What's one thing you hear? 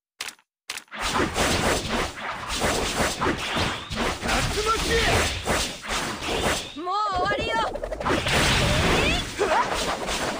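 Fight sounds of blows and blasts clash rapidly.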